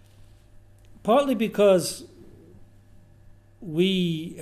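An elderly man speaks through a microphone in short bursts with pauses.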